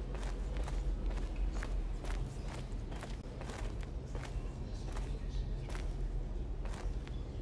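Footsteps crunch on a gritty floor.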